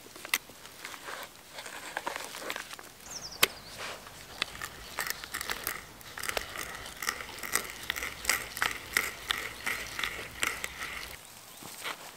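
A hand drill creaks as it bores into wood.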